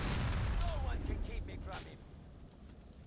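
A rocket launcher fires with a loud roaring whoosh.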